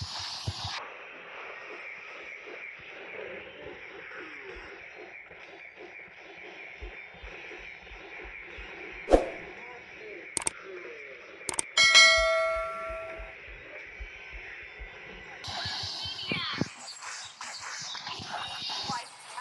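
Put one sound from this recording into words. Game combat effects crackle with sharp magic blasts and hits.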